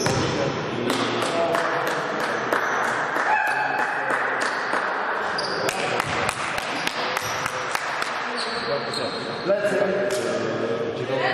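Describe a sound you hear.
Sneakers squeak sharply on a gym floor in a large echoing hall.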